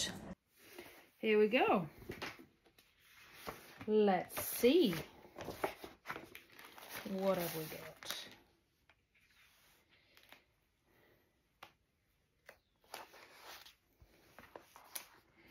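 Paper rustles and crinkles as a sheet is peeled back from a roller.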